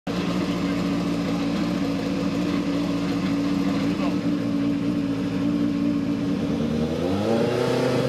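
A racing car engine idles with a deep, steady rumble.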